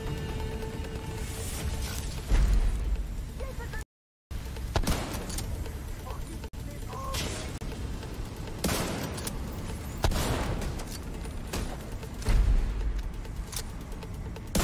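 Gunfire bursts in rapid volleys.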